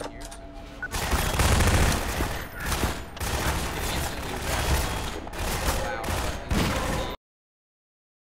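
Gunshots crack in quick bursts inside a large echoing hall.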